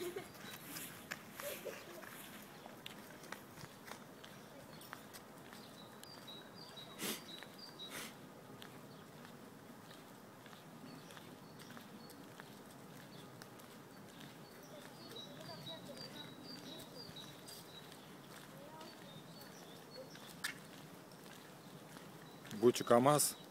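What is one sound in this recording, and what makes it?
Footsteps patter on pavement outdoors.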